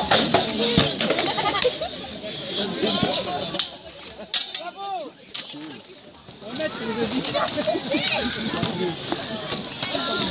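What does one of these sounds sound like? Swords clash against shields and armour with sharp metallic clangs.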